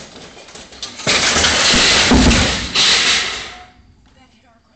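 A refrigerator topples over and crashes onto concrete.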